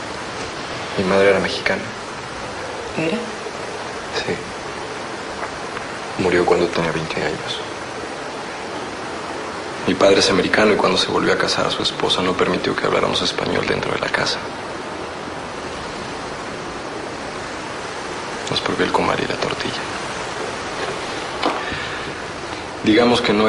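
A young woman speaks quietly and hesitantly nearby.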